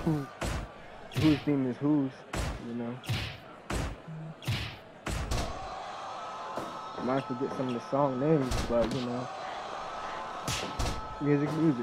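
Heavy blows and body slams land with sharp thuds.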